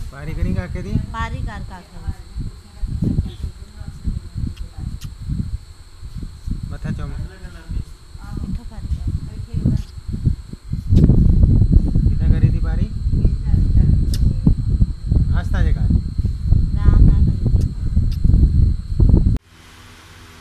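A young girl talks and giggles close by.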